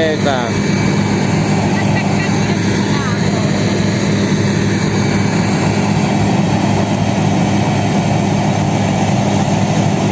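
A drilling rig's engine runs loudly and steadily outdoors.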